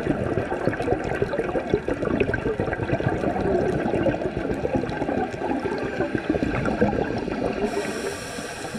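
A diver breathes steadily through a regulator.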